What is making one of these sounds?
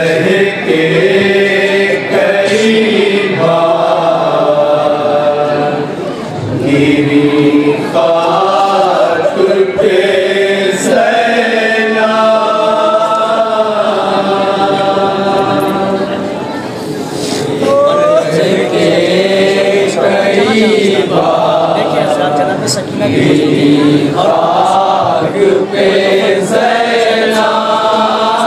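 A group of young men chant loudly together in rhythm through a loudspeaker.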